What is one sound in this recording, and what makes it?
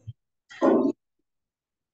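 A young girl speaks briefly through an online call.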